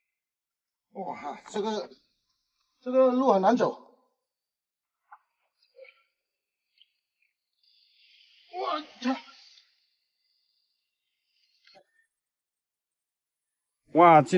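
A man talks in short bursts, close by.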